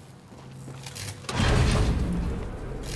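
A heavy lever clanks as it is pulled down.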